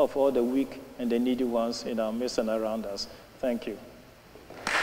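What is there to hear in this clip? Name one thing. An elderly man speaks calmly into a microphone in a large echoing hall.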